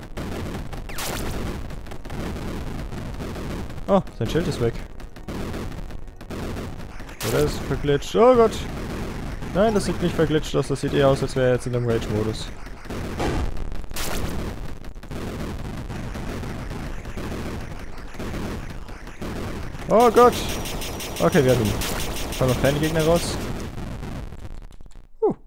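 Rapid electronic shots fire and burst in a fast video game battle.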